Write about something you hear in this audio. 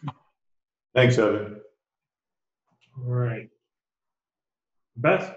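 A man speaks in a room, heard through a microphone.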